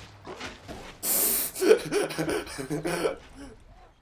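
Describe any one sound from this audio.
An explosion bursts with a rumbling blast.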